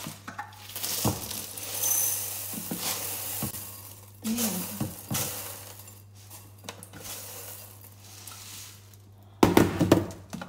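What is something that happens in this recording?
Cereal rattles as it pours from a plastic container into a bowl.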